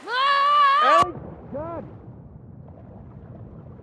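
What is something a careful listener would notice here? A body plunges into water, with muffled underwater sound.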